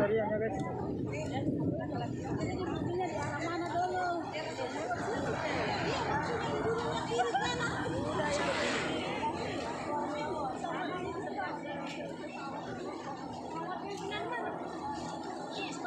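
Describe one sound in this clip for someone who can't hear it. A crowd of men, women and children chatter outdoors nearby.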